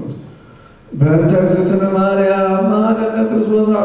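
A man chants in a loud, drawn-out voice through a microphone, echoing in a large hall.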